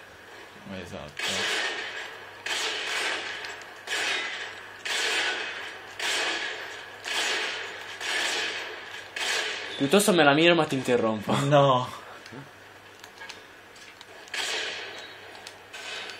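Rifle shots ring out one after another.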